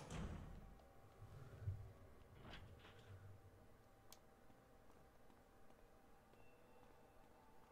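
Footsteps tap on a hard wet floor.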